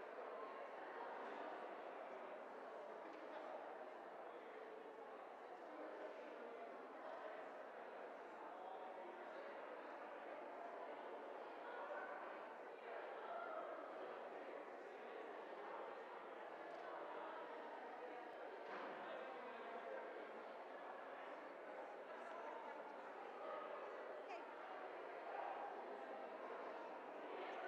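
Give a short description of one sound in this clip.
A crowd of men and women murmur and chat in a large echoing hall.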